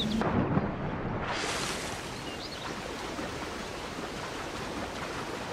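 A swimmer splashes through water.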